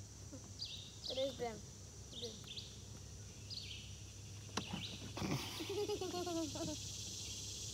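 A young girl talks softly.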